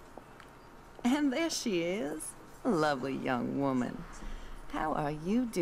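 A woman speaks warmly and cheerfully, close by.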